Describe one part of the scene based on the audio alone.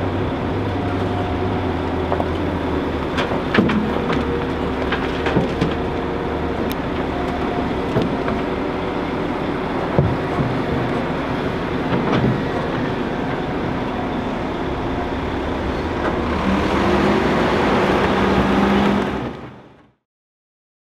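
A large diesel engine rumbles steadily nearby.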